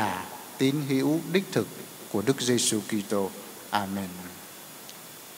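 An elderly man speaks calmly into a microphone, echoing slightly in a large hall.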